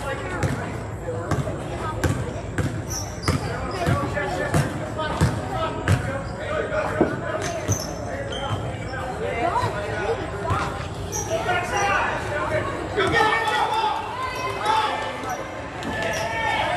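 Young spectators talk and call out nearby.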